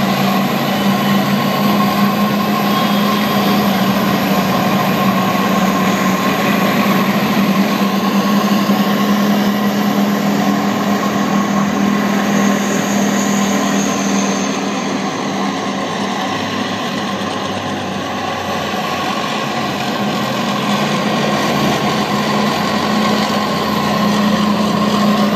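Car engines hum as traffic passes.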